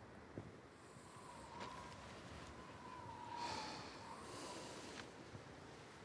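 Bedding rustles as a person sits up on a bed.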